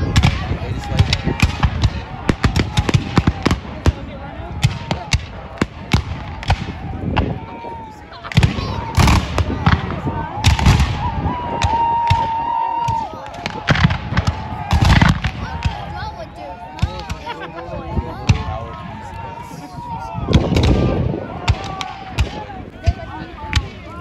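Rifles fire in rapid, crackling volleys outdoors.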